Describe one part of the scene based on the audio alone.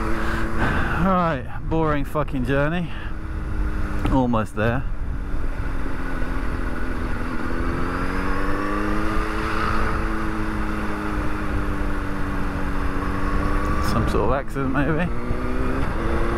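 A motorcycle engine revs up quickly several times as gears shift.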